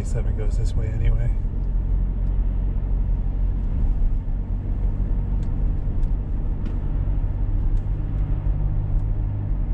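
Tyres roll with a low rumble on a wet road.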